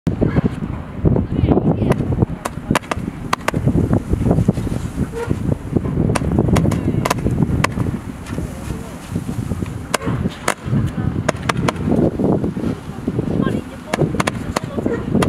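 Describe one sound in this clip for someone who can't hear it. Fireworks shoot up one after another with sharp pops.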